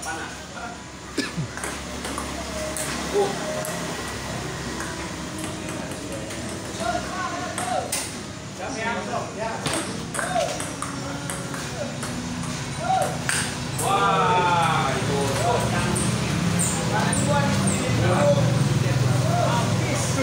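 A crowd of onlookers chatters and cheers nearby.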